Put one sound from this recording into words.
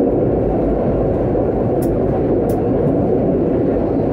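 A passing tram whooshes by close on the next track.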